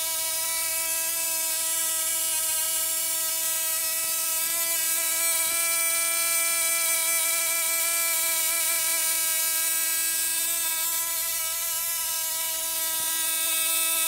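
An electric spark crackles and buzzes between two contacts.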